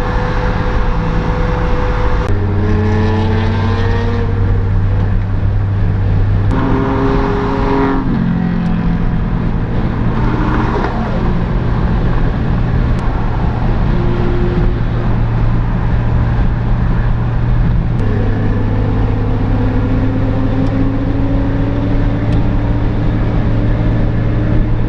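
A car engine drones steadily up close, its pitch jumping as it changes gear.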